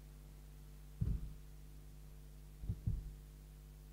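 Books thud softly as they are set down.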